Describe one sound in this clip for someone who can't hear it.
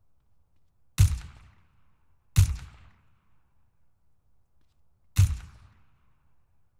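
Loud rifle shots ring out one at a time, each echoing briefly.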